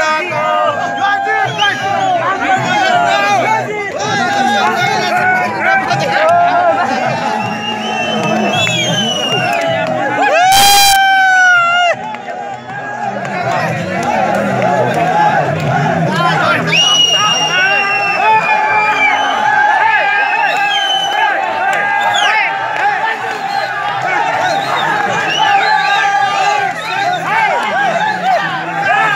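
A crowd of men and women talk and shout excitedly close by.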